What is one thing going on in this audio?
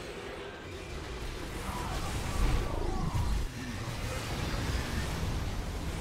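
Futuristic laser weapons zap rapidly in a battle.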